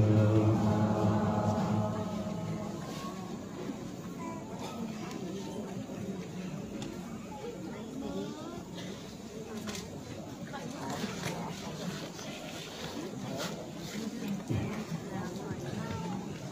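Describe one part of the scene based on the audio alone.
An elderly man speaks calmly into a microphone, heard through loudspeakers in an echoing hall.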